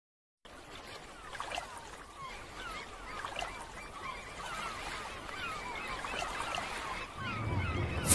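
Small waves wash onto a beach.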